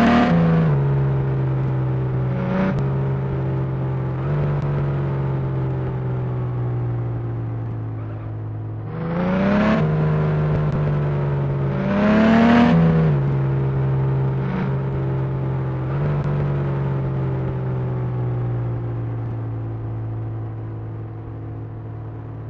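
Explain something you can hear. A small truck engine hums steadily and revs up now and then.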